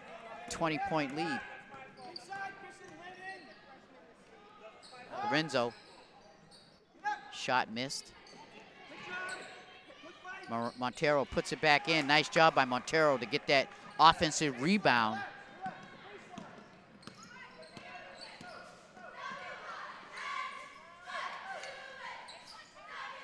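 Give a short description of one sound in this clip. A crowd murmurs and shouts in a large echoing gym.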